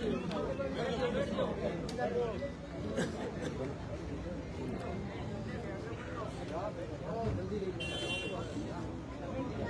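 A middle-aged man speaks forcefully into a microphone through loudspeakers.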